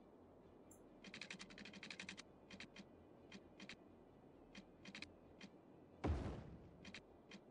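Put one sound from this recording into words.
Quick ticking clicks sound as a road is dragged out in a game.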